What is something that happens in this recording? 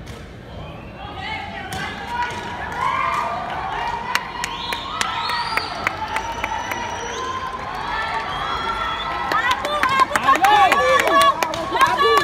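Several people shout and cheer loudly nearby.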